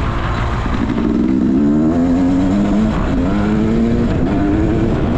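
Tyres rumble over bumpy dry grass.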